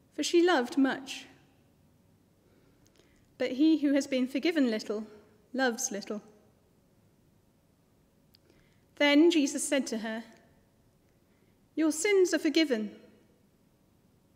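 A woman reads aloud calmly and close to a microphone, in short phrases with pauses.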